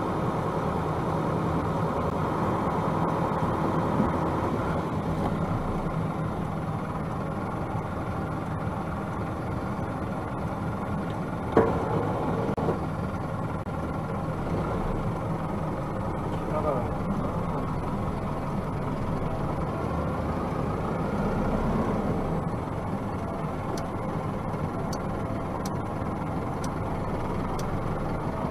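A vehicle engine idles and then hums as the vehicle drives off.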